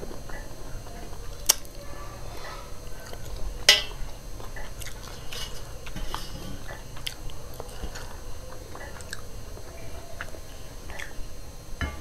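Hands scrape and tap food in a metal bowl.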